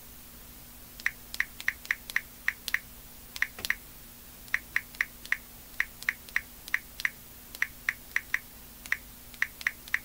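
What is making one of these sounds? Quick taps click on a phone.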